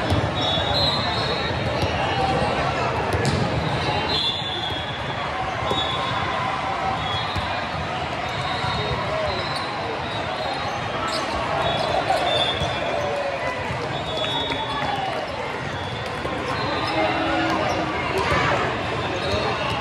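A large crowd chatters throughout a big echoing hall.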